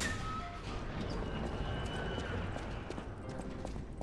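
An iron gate creaks open.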